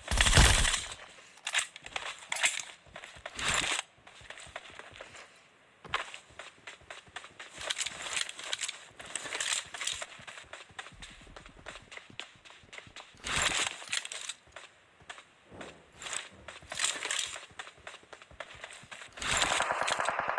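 Footsteps run quickly over dirt ground.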